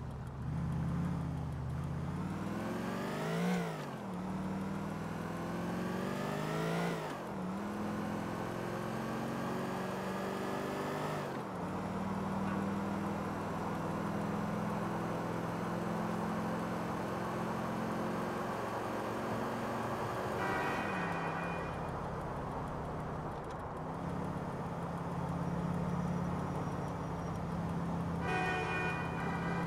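A car engine revs hard, rising in pitch and dropping back with each gear change.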